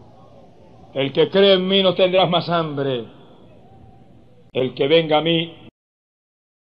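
An elderly man preaches emphatically into a microphone.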